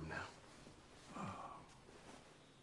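An elderly man groans weakly.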